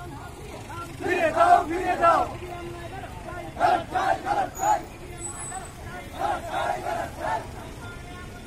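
A crowd of men chants slogans in loud bursts outdoors.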